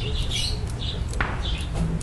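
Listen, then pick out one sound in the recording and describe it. A dog's claws click on concrete.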